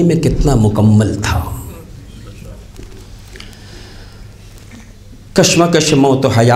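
A middle-aged man speaks with feeling into a microphone, pausing between phrases.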